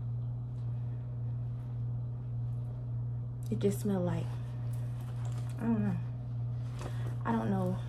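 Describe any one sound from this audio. Denim fabric rustles as a young woman handles it.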